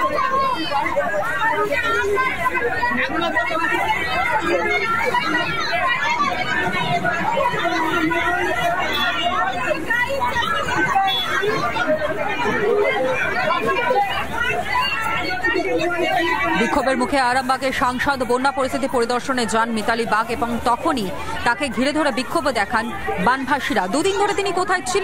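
A crowd of men and women talk and argue loudly over one another outdoors.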